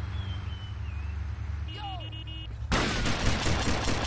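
A car door opens with a clunk.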